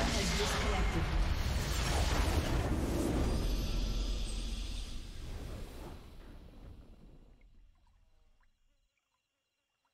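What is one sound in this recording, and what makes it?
A triumphant fanfare booms loudly and slowly fades away.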